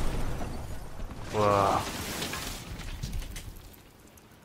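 Chunks of rubble clatter and tumble to the ground.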